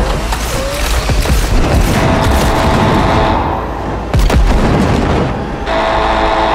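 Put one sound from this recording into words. Loud bangs and crashes sound from across a room.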